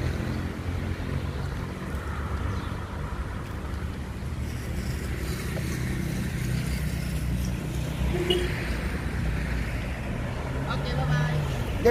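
A car engine idles nearby with a low rumble.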